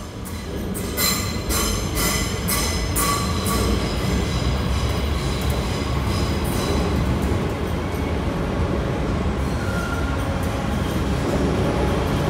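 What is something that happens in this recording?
A train rolls slowly past close by with a loud rumble.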